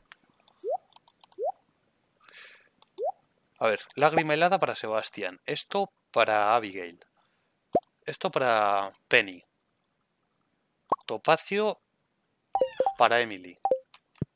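Game menu items click softly as they are selected.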